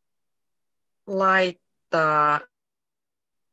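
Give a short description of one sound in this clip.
A young woman speaks two short, drawn-out phrases through an online call.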